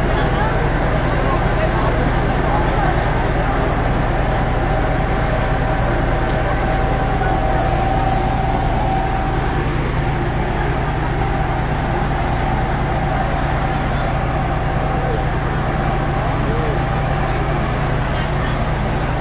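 A crowd of men talk and shout excitedly outdoors.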